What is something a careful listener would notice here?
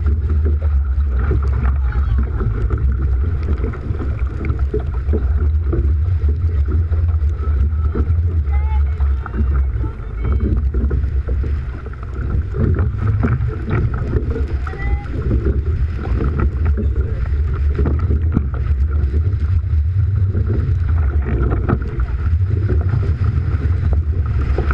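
Waves slap against the boat's hull.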